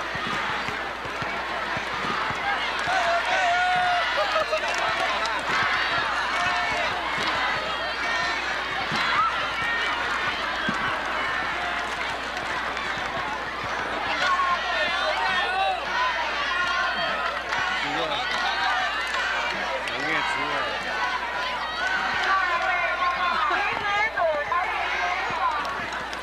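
A large outdoor crowd chatters and cheers.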